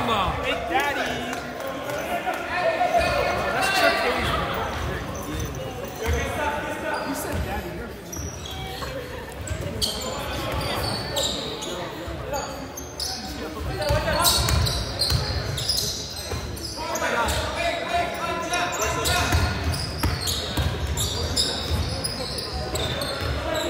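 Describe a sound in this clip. A crowd of spectators talks and cheers in a large echoing hall.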